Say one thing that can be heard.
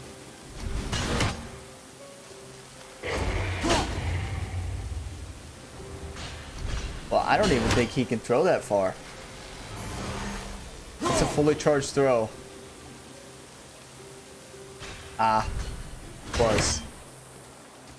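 An axe strikes with a heavy thud.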